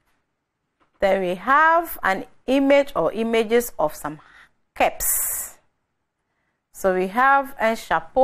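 A young woman speaks clearly and calmly into a microphone, as if teaching.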